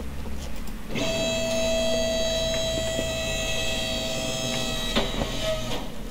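A car lift motor whines steadily as it raises a car.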